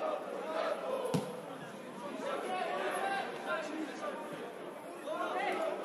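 Football players shout to each other across an outdoor pitch.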